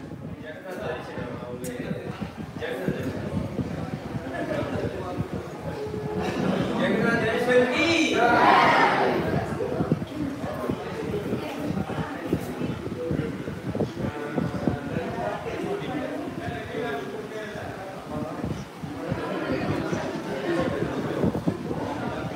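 A crowd of men and women chatter throughout.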